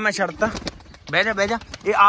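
Large wings flap and beat the air.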